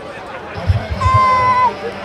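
A referee blows a long whistle blast.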